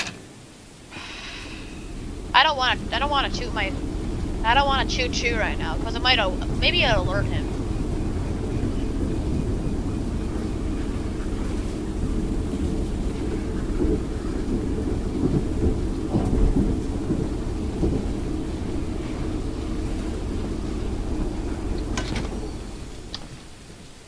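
A locomotive engine rumbles steadily.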